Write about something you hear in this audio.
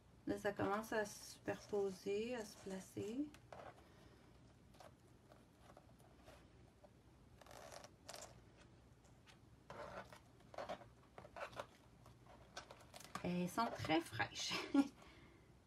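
Fingers rub and smear wet paint across a canvas.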